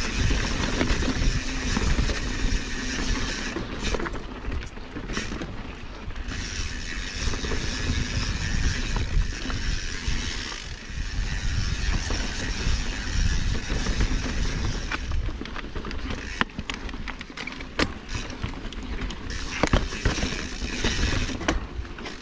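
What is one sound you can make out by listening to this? Bicycle tyres crunch and rattle over rocky dirt.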